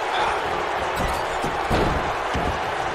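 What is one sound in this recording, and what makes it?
A body slams heavily onto the ring mat.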